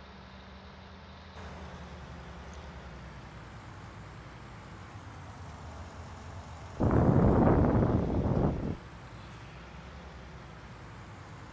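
A large harvester engine hums steadily.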